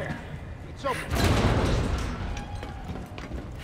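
A heavy metal door unlocks and swings open with a loud clank.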